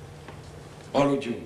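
A man speaks up briefly and loudly.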